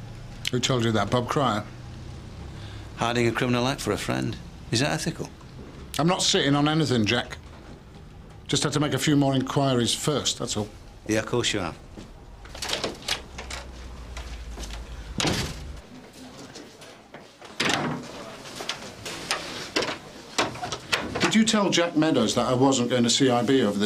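A middle-aged man speaks close by, firmly and intently.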